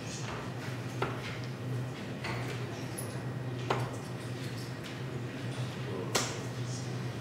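Darts thud sharply into a dartboard one after another.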